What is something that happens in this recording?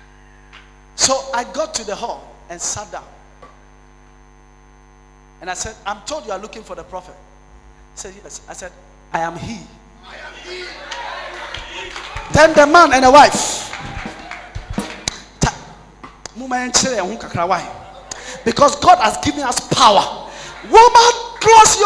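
A man preaches loudly and with animation through a microphone in a large hall.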